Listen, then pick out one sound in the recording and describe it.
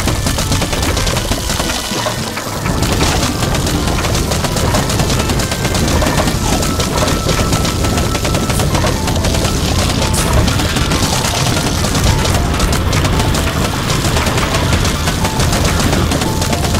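Cartoon game shots pop and splat rapidly and without pause.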